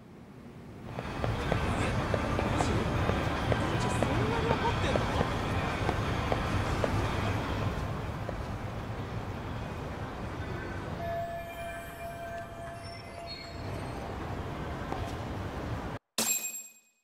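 A busy street murmurs with crowd noise outdoors.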